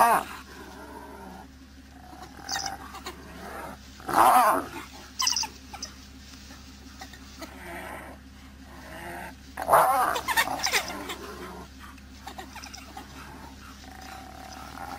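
A hyena whoops and growls loudly up close.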